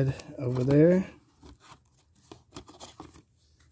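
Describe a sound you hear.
Cards flick and rustle as fingers leaf through a stack.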